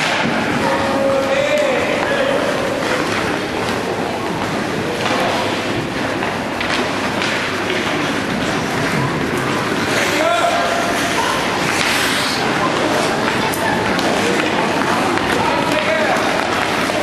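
Spectators shout and cheer in a large echoing rink.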